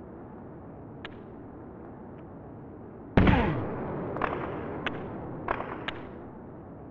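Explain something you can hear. A hockey stick smacks a puck with short, sharp clicks.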